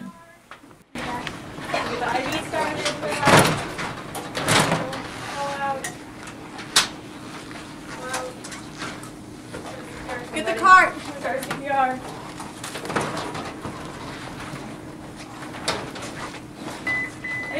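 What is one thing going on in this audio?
Bedsheets rustle as people move around a bed.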